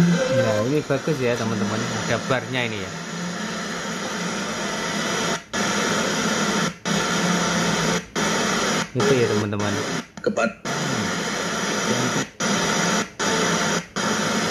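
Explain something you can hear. Music plays through a small loudspeaker, cutting off briefly again and again as tracks are skipped.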